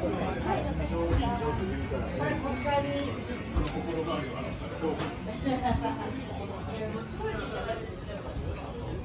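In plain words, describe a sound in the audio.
Men and women chat quietly nearby.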